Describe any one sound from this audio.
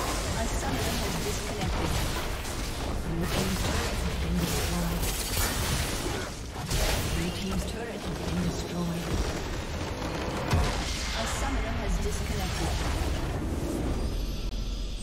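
Game spell effects and weapon clashes crackle and boom in a busy battle.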